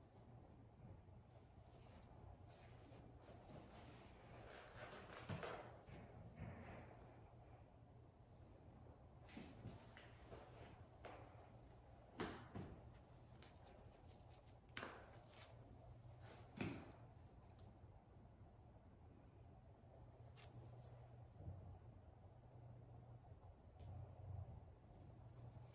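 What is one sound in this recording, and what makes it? Hair rustles softly as it is handled.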